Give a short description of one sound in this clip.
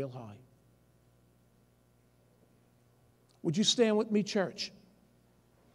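A middle-aged man speaks emphatically through a microphone, with pauses.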